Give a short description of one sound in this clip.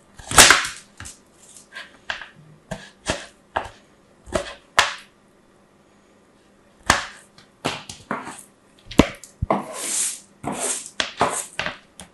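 Crisp soap shavings rustle and crunch under fingers.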